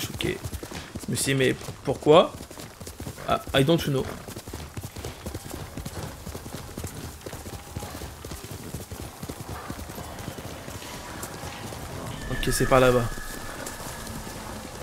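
A horse gallops over soft ground.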